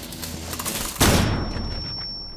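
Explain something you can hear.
A stun grenade goes off with a loud bang.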